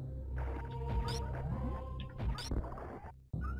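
Retro video game laser shots zap in short bursts.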